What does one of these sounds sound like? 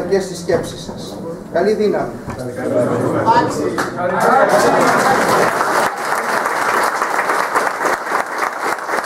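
Elderly men chant a prayer together, close to a microphone.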